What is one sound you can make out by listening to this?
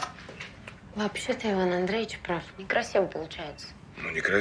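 A young woman speaks sharply, close by.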